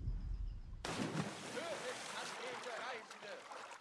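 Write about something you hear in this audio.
Water splashes as a swimmer strokes through it.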